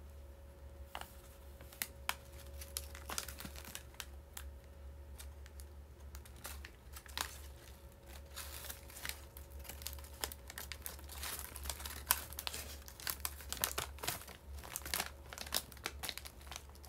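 A paper bag crinkles and rustles close by.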